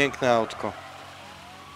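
A man speaks briefly and with animation into a microphone.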